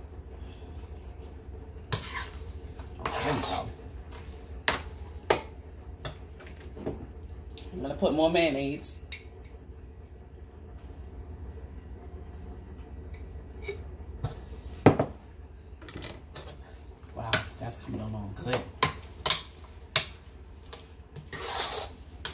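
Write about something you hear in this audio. A spoon scrapes and knocks against a metal pot.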